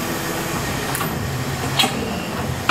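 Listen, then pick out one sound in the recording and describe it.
Metal clanks sharply.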